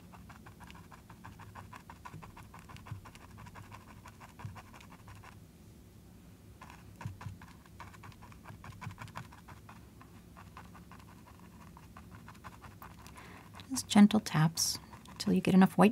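A paintbrush softly scratches and dabs on canvas.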